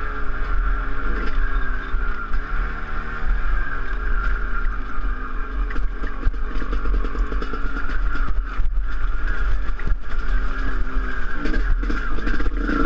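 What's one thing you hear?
Tyres bump and rattle over a rough dirt track.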